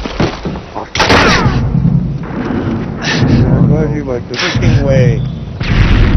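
An explosion booms loudly and debris crackles.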